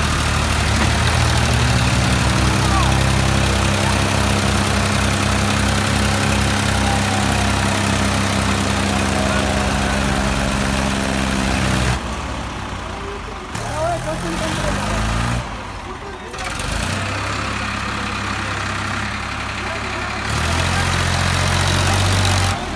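A tractor's diesel engine roars and labours loudly close by.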